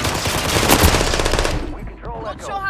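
Gunfire from a video game rattles loudly.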